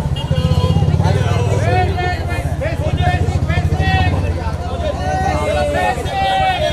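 Several women chat and greet each other excitedly nearby.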